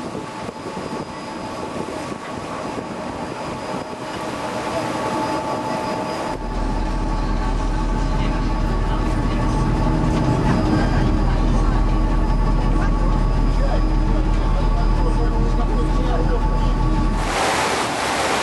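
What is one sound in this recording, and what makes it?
A boat's engine hums steadily.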